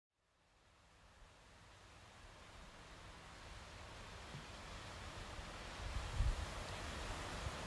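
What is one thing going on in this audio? Gentle waves wash against rocks on a shore.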